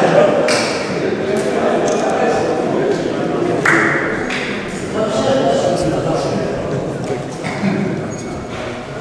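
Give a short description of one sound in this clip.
A crowd of men and women chatters loudly in an echoing hall.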